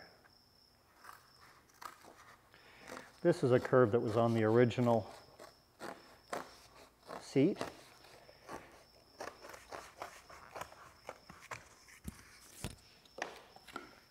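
Scissors snip and crunch through stiff cardboard.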